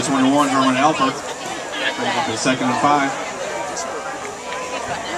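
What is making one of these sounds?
A crowd murmurs and calls out from the stands in the distance.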